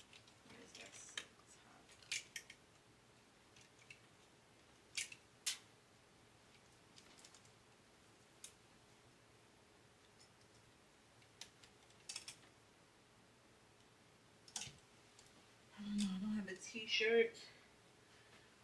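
Hangers scrape and click along a clothes rail.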